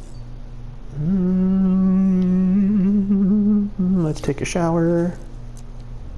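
A man hums a long, wavering tune nearby.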